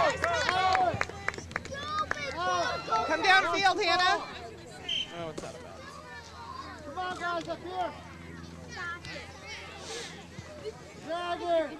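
Young girls shout and call out excitedly outdoors.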